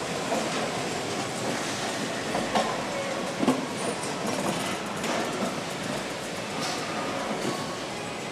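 A chain conveyor rattles as it carries pistons.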